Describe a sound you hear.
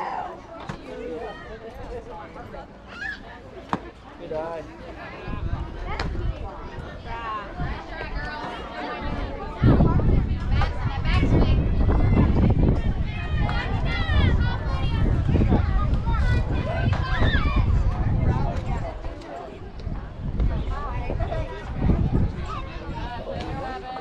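Young girls call out and cheer from across an open field, outdoors in gusty wind.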